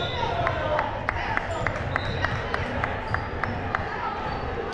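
A basketball bounces rhythmically on a wooden floor.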